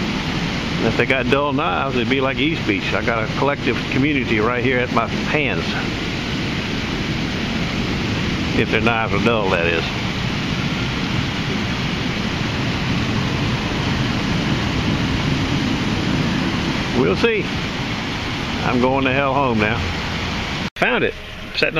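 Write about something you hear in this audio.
Water splashes steadily from a fountain.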